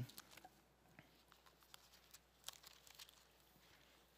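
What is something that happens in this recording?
Paper pages rustle as a man turns them.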